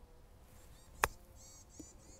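A golf club clicks against a ball in a short chip shot.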